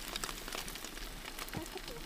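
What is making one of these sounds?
Eggs sizzle in a frying pan.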